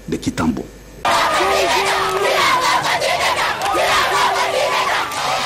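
A crowd of children cheers and shouts loudly.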